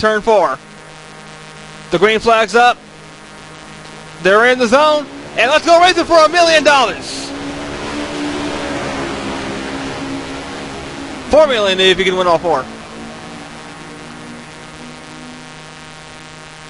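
A pack of race car engines drones steadily.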